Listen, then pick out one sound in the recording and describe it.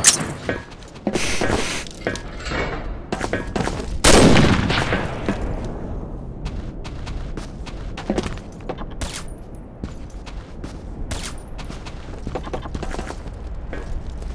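Footsteps clang on a metal roof.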